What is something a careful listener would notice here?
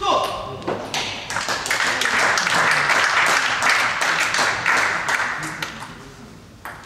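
A small crowd applauds in a large echoing hall.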